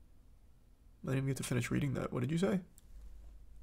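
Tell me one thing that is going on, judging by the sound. A man speaks briefly with animation into a close microphone.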